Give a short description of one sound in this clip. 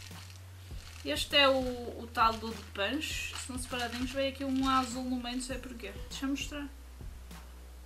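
Wrapper paper crinkles in hands.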